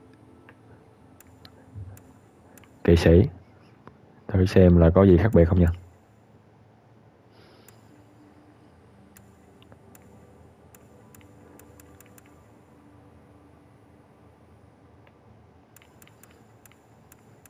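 Soft menu clicks sound now and then.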